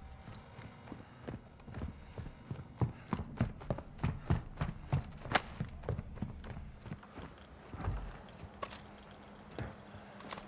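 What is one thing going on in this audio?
Footsteps thud quickly on wooden floors and hard ground.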